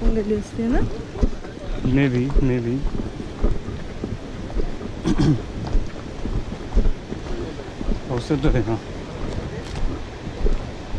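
Footsteps crunch on a rocky dirt path.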